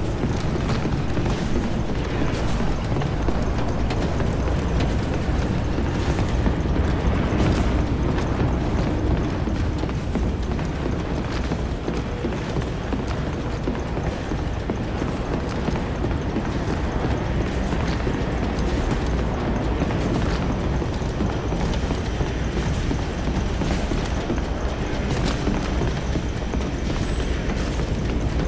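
Footsteps run across a hard metal floor.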